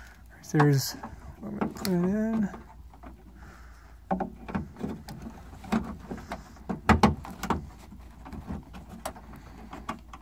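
Fingers click and rattle small plastic parts.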